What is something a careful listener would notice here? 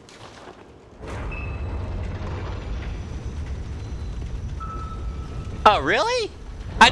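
A heavy stone door rumbles and grinds slowly open.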